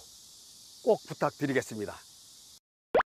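A middle-aged man speaks with animation, close to a microphone.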